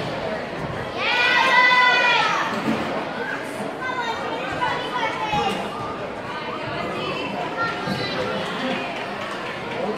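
Girls chatter and call out in a large echoing gym.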